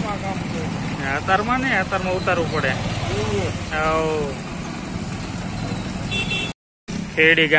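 Motorcycle engines hum as they ride past.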